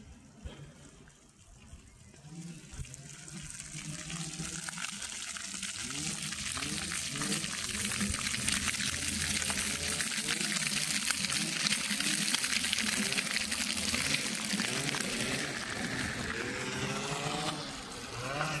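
Small ground-level fountain jets splash onto paving.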